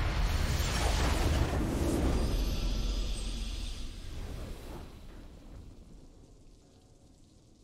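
A triumphant fanfare swells and slowly fades away.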